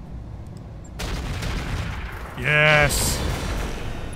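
Laser weapons fire with a rushing blast.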